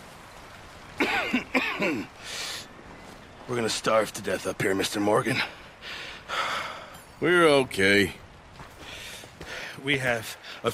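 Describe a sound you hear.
A man speaks in a low, weary voice.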